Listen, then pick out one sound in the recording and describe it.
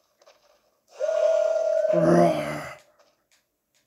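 A large creature lets out a loud, growling roar.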